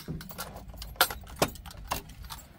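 Keys jingle and click in a door lock.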